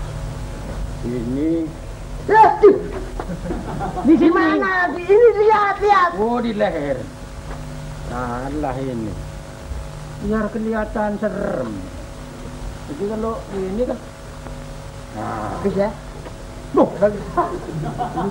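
A second man talks and exclaims in a comic voice.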